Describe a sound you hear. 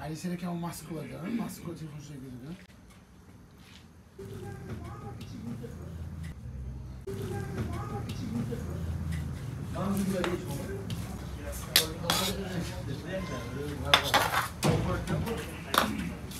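A metal paddle scrapes and stirs through rice in a large metal pot.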